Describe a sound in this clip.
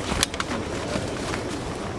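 Boots thud on a metal hatch.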